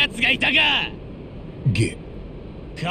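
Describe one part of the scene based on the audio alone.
A man shouts angrily, close by.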